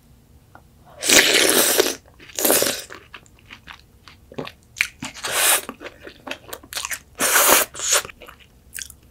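A young woman loudly slurps soup from a spoon close by.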